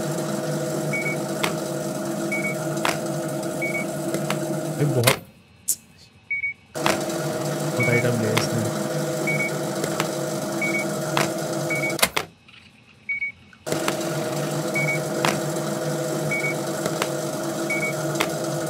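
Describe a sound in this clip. A checkout scanner beeps each time an item is scanned.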